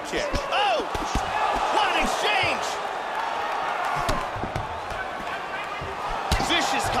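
A crowd cheers and roars throughout.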